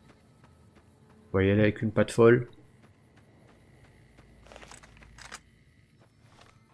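Footsteps crunch on dry ground.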